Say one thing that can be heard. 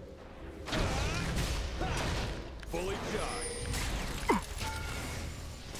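Spell effects whoosh and crackle in a fantasy game battle.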